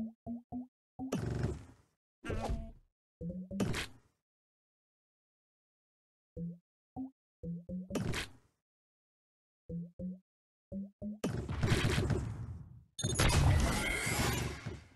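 Bright whooshing bursts of game effects play as pieces clear.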